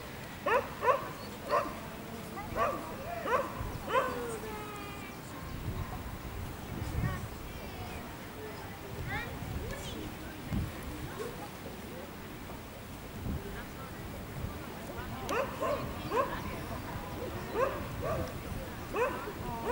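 A woman speaks to a dog in short, high, encouraging phrases outdoors.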